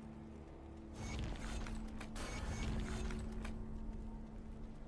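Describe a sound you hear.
A bright magical chime rings out with a rushing swell.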